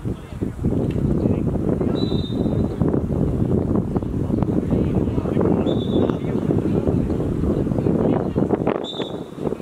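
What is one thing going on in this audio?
Wind buffets loudly across the microphone outdoors.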